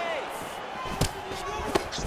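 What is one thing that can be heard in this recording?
A kick lands on a body with a sharp thud.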